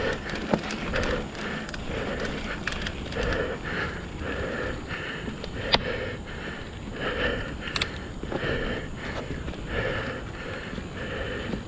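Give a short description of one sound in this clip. A bicycle's frame and parts rattle and clack over bumps.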